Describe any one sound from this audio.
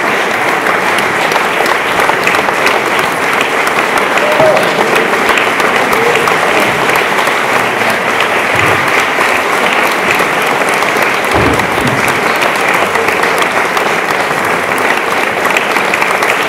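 An audience applauds loudly and steadily in a large hall.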